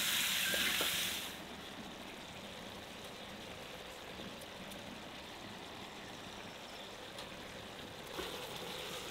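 A wooden spatula scrapes and stirs in an iron pan.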